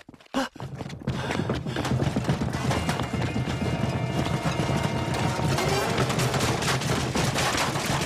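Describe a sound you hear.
Rickshaw wheels rattle and rumble over stone paving.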